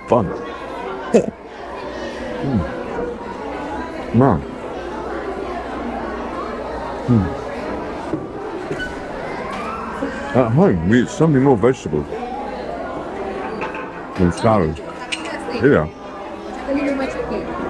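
A teenage boy laughs and talks close by.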